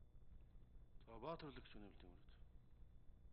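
An older man speaks briefly into a microphone.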